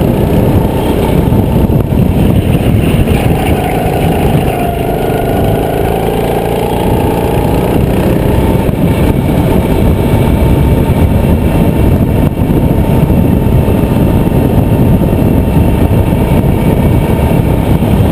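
A kart engine roars loudly close by, its pitch dropping and rising through the corners.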